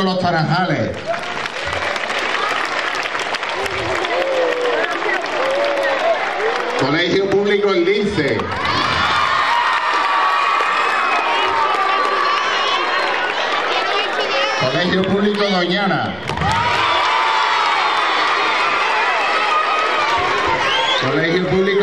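A crowd of children cheers and shouts.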